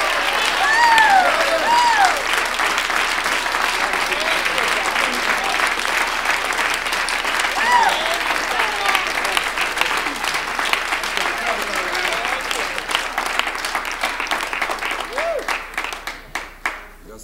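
A crowd claps rhythmically.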